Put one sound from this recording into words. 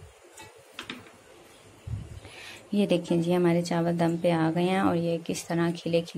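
A spoon stirs and scrapes rice in a metal pot.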